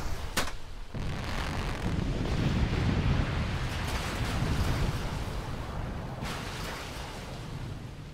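Rock and earth crash down a slope with a deep rumbling roar.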